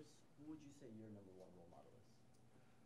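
A young man asks a question calmly, a little way off.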